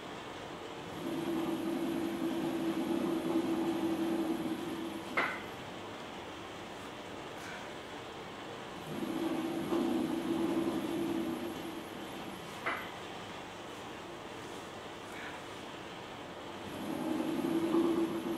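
A potter's wheel motor hums as it spins.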